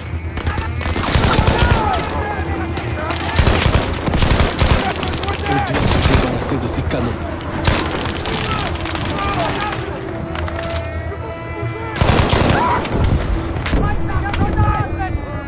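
Rifle shots crack in quick bursts.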